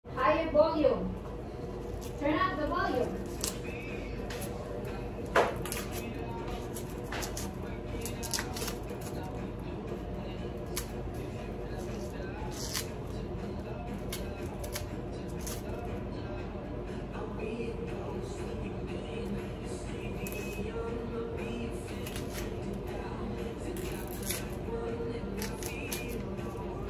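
Hands knead soft dough with quiet rubbing and slapping.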